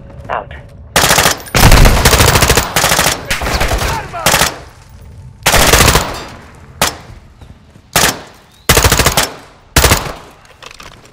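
Suppressed rifle shots fire in quick bursts.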